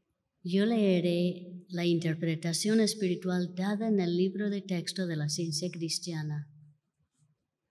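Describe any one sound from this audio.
A woman speaks clearly into a microphone in a large hall.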